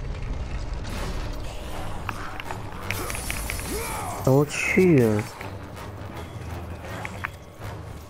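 Blades swish and clash in a fight.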